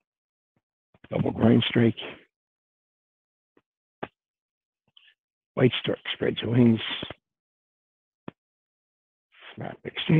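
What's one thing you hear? An elderly man speaks calmly and close up, in short phrases.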